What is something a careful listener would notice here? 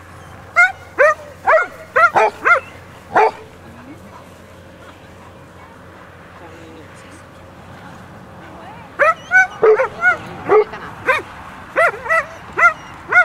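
A dog barks repeatedly in loud, sharp bursts.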